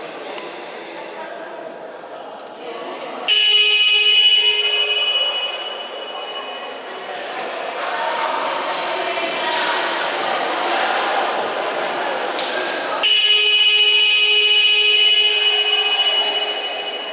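Several young players chatter and call out nearby.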